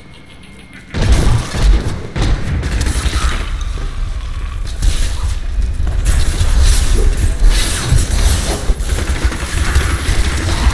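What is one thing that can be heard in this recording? Weapons clash and spells crackle loudly in a fight.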